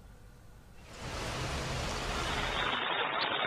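Floodwater rushes steadily along a street.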